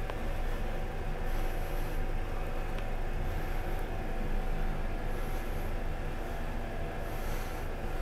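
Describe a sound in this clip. A rope-driven passenger elevator hums softly as it rises.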